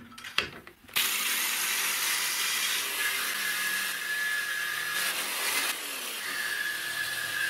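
A jigsaw buzzes loudly, cutting through metal with a harsh rasp.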